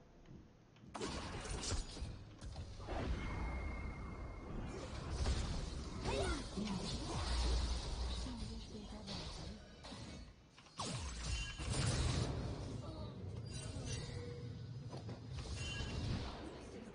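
Video game combat effects crackle and clash in bursts.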